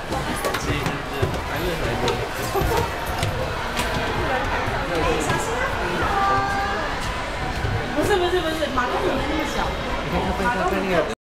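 Children and adults chatter and call out nearby in a large echoing hall.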